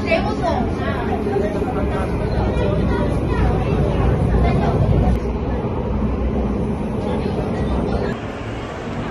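A train rumbles steadily along its tracks.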